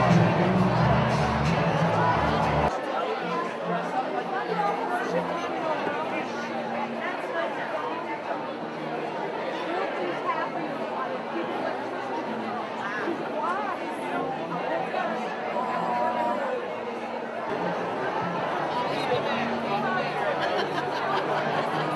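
A crowd of adults chatters and laughs in a large, echoing room.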